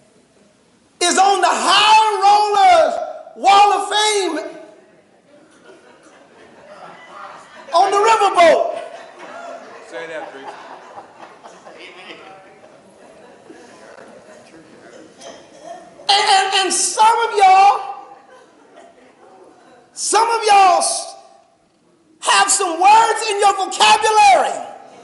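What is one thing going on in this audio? A man preaches with animation through a microphone, in loud sung-out bursts.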